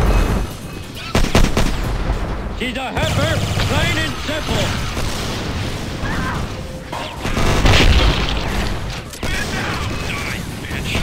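A gun fires rapid bursts of shots.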